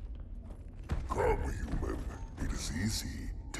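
A man speaks slowly in a deep, rough voice.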